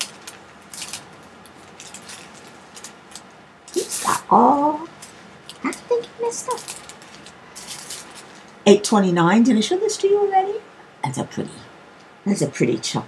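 Plastic bags crinkle and rustle as hands handle them.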